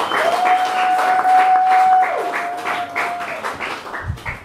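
Guitar feedback howls in a steady high tone.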